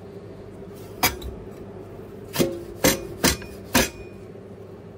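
Metal containers clank and knock sharply several times.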